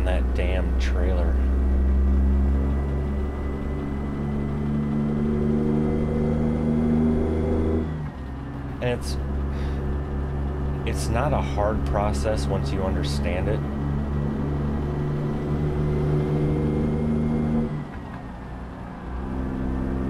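A truck engine rumbles steadily, rising and falling as it shifts gears.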